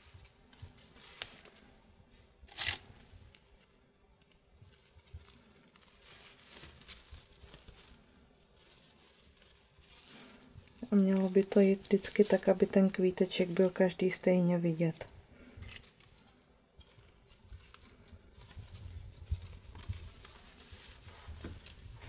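Lace fabric rustles softly as it is handled.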